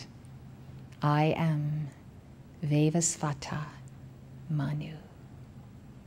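A woman speaks slowly and solemnly into a microphone.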